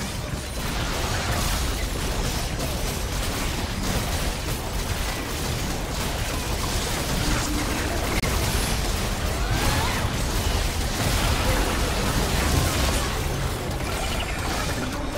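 Magic blasts and weapon strikes crackle in quick succession.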